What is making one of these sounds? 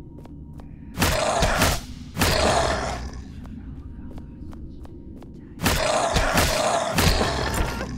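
Weapon blows strike in a loud, bursting fight.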